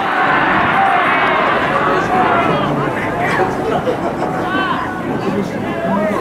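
A man shouts loudly from the sideline.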